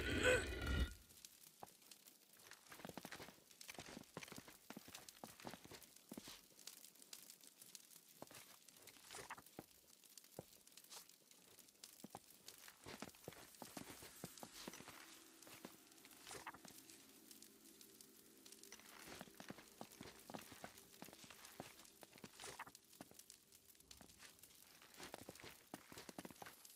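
Footsteps scuff and tap on a stone floor.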